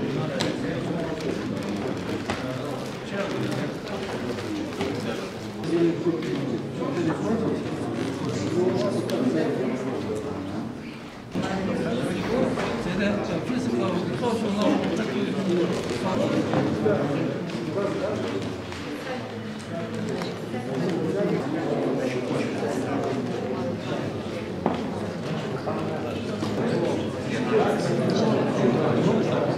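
A crowd of men and women chat and murmur nearby in a room.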